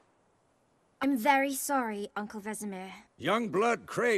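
A young woman speaks quietly and apologetically, close by.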